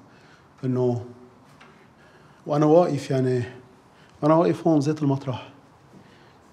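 A middle-aged man speaks slowly and solemnly, close by.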